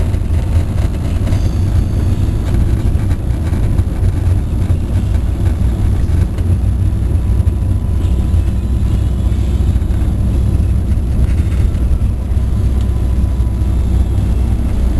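Tyres hiss and roar on a wet road.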